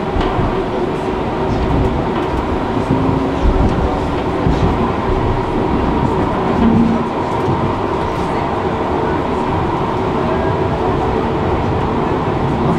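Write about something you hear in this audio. A tram rumbles and hums steadily as it rides along the rails.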